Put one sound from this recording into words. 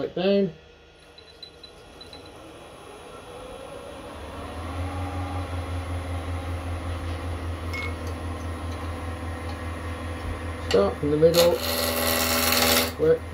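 A wood lathe motor starts up and whirs steadily.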